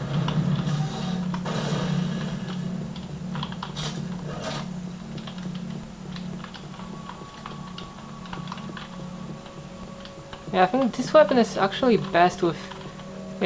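Computer keys clack under quick typing.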